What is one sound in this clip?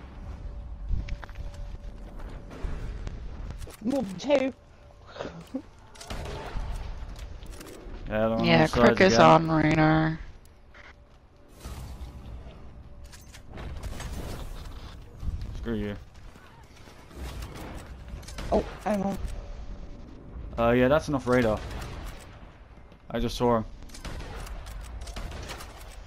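Rifle shots crack now and then.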